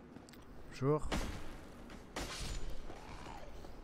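Metal weapons clash with sharp hits.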